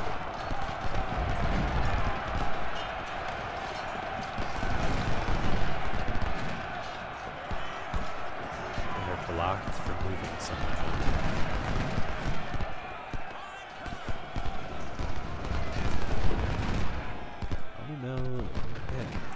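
Musket fire crackles in a distant battle.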